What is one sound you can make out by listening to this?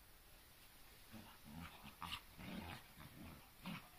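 Two dogs scuffle and tumble on grass.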